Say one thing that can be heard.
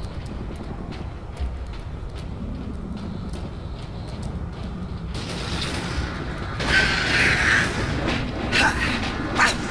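Heavy armoured footsteps clank steadily.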